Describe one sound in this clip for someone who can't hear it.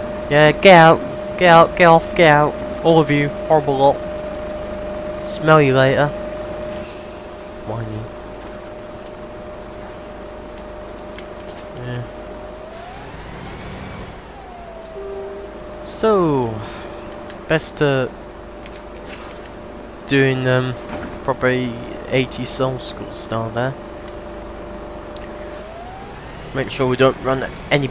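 A bus engine idles with a steady hum.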